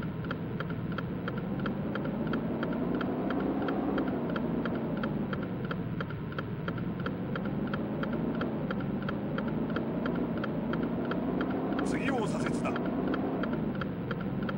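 A car engine hums, rising and falling in pitch as it speeds up and slows.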